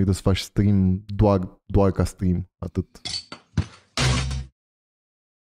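A young man speaks with animation, close to a microphone.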